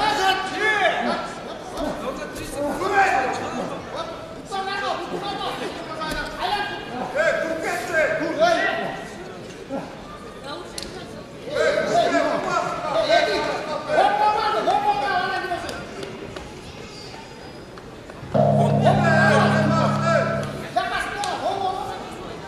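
Men in a crowd shout excitedly in a large echoing hall.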